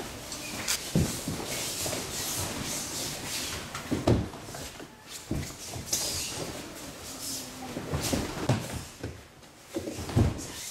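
Bodies thud onto a padded mat.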